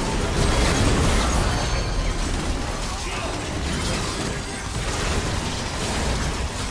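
Magic spells whoosh and explode in a busy game battle.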